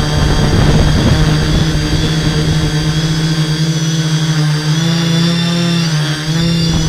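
The electric motors and propellers of a hexacopter drone whine with a shifting pitch.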